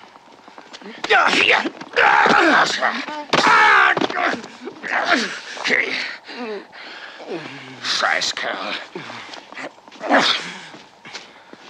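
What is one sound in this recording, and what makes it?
A young man cries out in pain.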